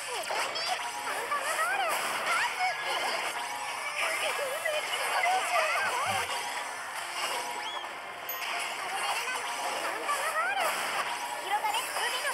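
Magic spells whoosh and blast in quick succession.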